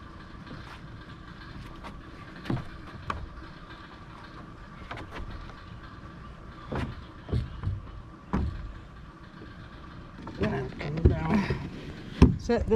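Wooden beams knock and thud against each other.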